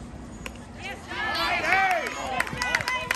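A crowd cheers and shouts loudly.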